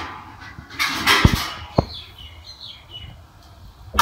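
A metal lid clinks against a plate.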